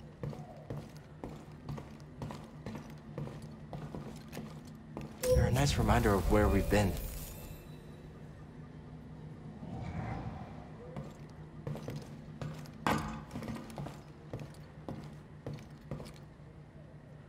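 Footsteps tap steadily on a hard metal floor.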